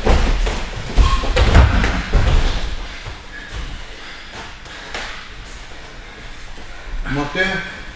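Bare feet shuffle on a padded mat.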